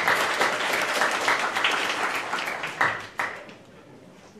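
An audience applauds in a room.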